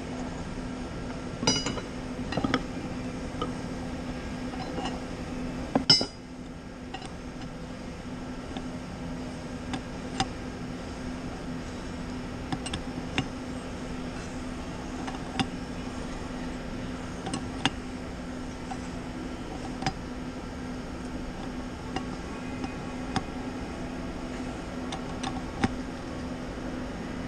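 A steady machine hum drones in the background.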